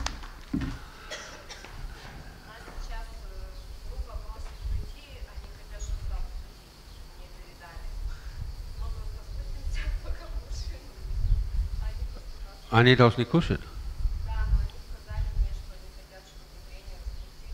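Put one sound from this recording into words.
An elderly man speaks calmly through a headset microphone.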